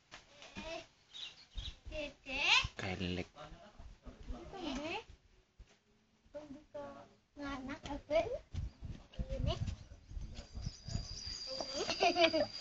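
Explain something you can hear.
Toddlers babble and squeal.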